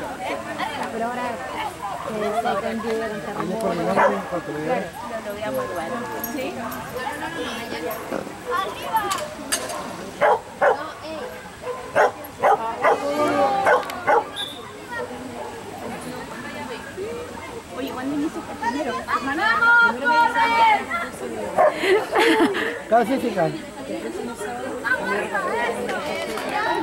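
A woman calls out commands to a dog outdoors.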